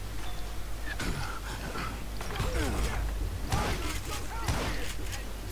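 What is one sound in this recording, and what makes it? Gunshots ring out loudly.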